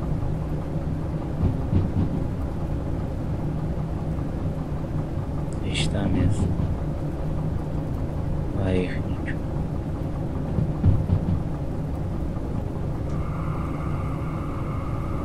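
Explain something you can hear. A diesel locomotive engine rumbles, heard from inside the cab.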